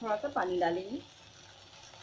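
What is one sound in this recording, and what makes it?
Liquid is poured into a hot pan.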